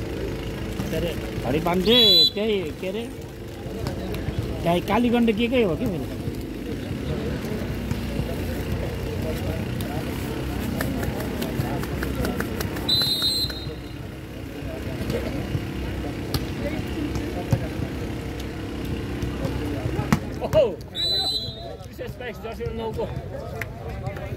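Young men shout and call out across an outdoor court.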